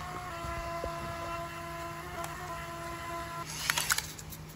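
A small printer whirs as it feeds out a paper slip.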